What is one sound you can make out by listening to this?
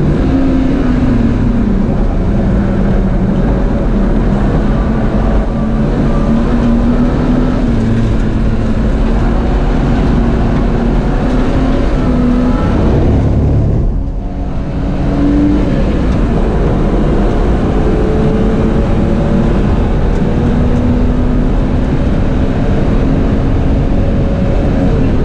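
Tyres rumble and hum over the track.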